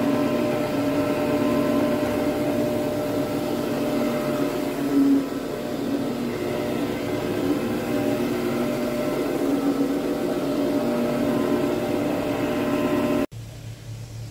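A carpet agitating machine hums and whirs steadily.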